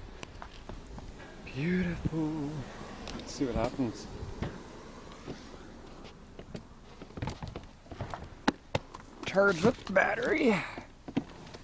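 Hail pellets tick and patter on a car's body.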